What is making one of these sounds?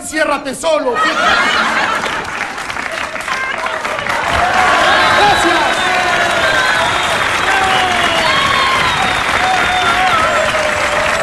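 A large crowd cheers, whistles and shouts excitedly.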